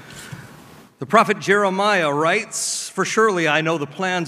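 A man speaks into a microphone at a podium.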